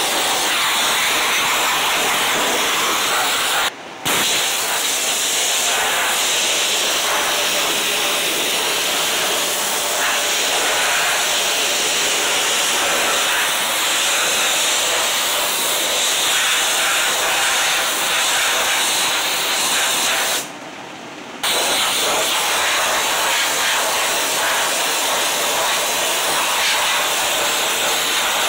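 A sandblaster hisses loudly and steadily, with brief pauses.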